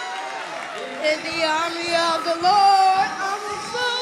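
A young girl sings loudly into a microphone.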